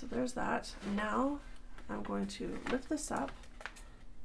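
Paper rustles as it is handled and folded.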